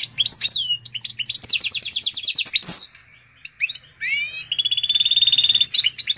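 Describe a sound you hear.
A goldfinch and canary hybrid sings a fast song of twitters and trills.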